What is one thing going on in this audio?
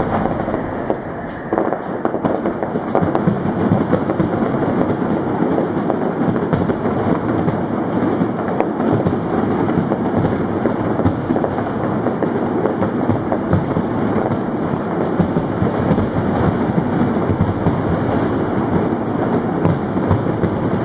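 Firework crackles pop rapidly.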